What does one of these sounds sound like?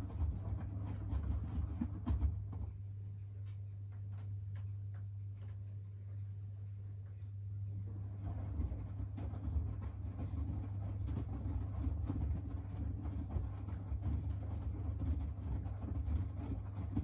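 Wet laundry tumbles and sloshes inside a washing machine drum.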